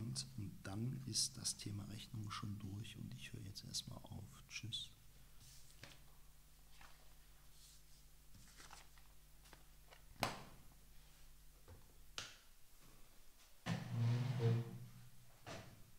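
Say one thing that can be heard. A young man reads aloud calmly and close to a microphone.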